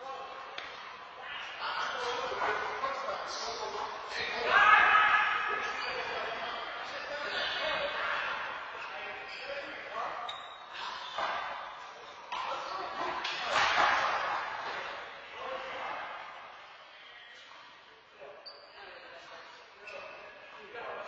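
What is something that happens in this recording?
Several adults talk and laugh in a large echoing hall.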